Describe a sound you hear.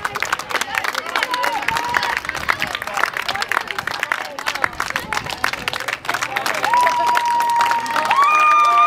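Spectators clap their hands.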